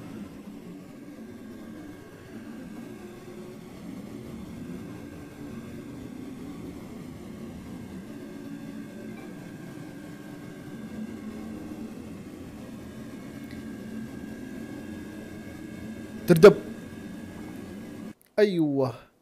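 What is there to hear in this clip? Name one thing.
Propeller engines drone steadily.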